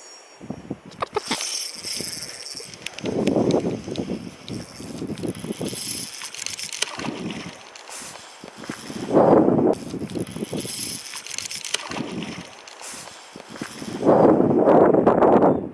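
A fishing reel clicks and whirs as its line is wound in.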